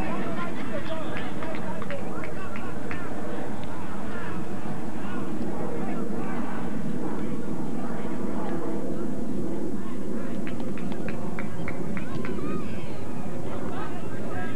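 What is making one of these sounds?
A crowd of spectators chatters and calls out nearby outdoors.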